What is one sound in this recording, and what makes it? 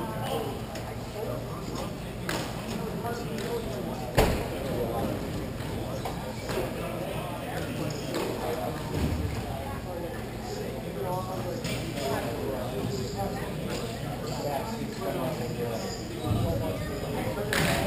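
Players' voices call out, distant and echoing in a large hall.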